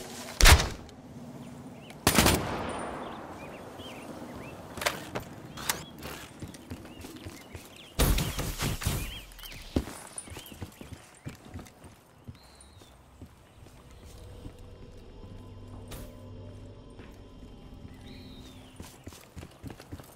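Footsteps tread across the ground.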